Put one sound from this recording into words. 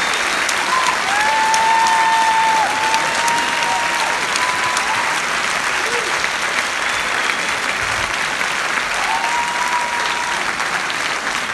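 Audience members whistle shrilly.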